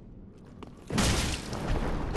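A sword strikes with a loud slashing hit.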